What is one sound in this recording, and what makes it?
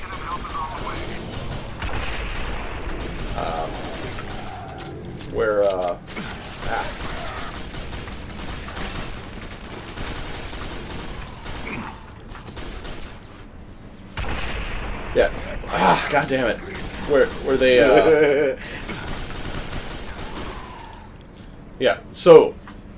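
A rifle fires rapid bursts in an echoing metal corridor.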